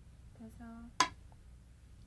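A stone clicks sharply onto a wooden board.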